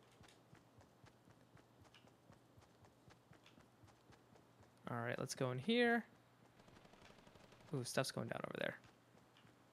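Footsteps patter quickly and steadily on the ground.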